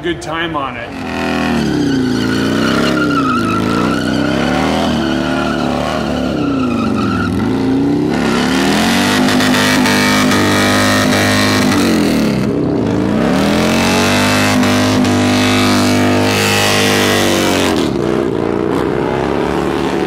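A motorcycle engine revs hard in a burnout, rising and falling.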